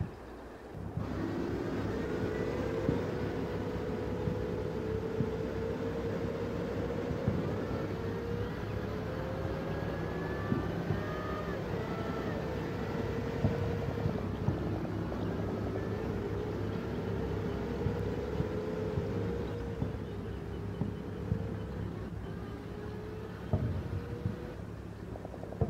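A tank engine drones steadily.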